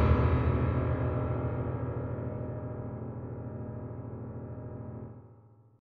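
A piano chord rings out and slowly fades.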